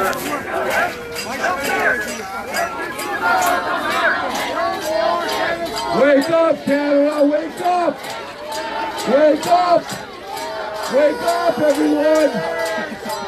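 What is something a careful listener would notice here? A crowd of men and women talk and murmur outdoors.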